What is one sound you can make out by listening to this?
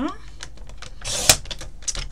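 A paper trimmer blade slides and cuts with a short scrape.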